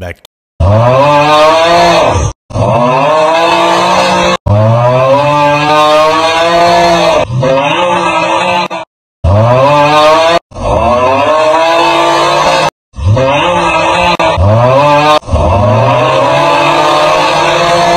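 A man screams loudly and at length, again and again, in short breaks.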